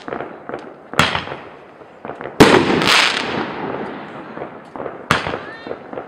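Firework sparks crackle and fizz.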